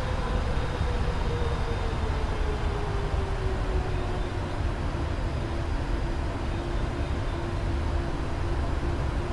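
Jet engines hum steadily with a low cockpit rumble.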